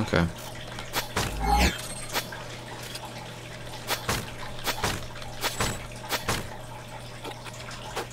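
A blade slashes and strikes an enemy several times.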